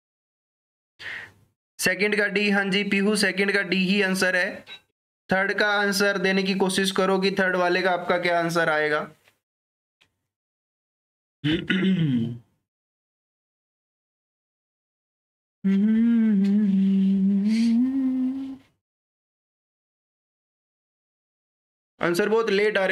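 A man speaks calmly into a close microphone, in bursts with pauses.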